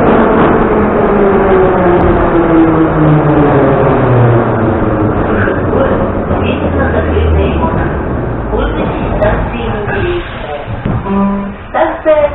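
A subway train rumbles and whines as it slows to a stop.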